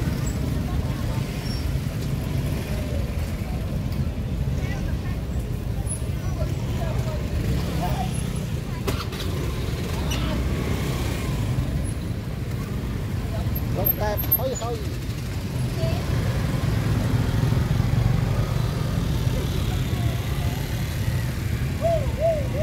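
Motorbikes rumble past outdoors on a busy street.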